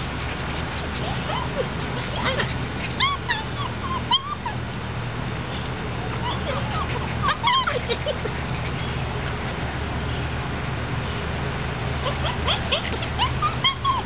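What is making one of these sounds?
Puppies whine and yelp in high-pitched bursts outdoors.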